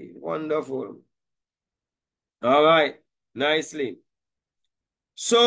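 A middle-aged man speaks calmly into a microphone, heard over an online call.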